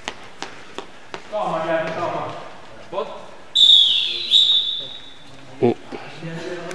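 A ball thuds sharply against feet and the floor in an echoing hall.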